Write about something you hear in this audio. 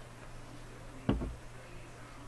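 A plastic cup is set down on a table with a thump.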